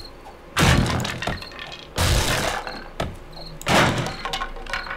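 A wooden club hits a body with heavy, dull thuds.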